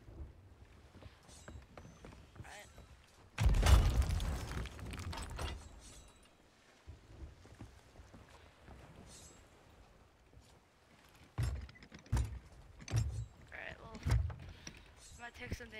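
Waves lap against a wooden ship.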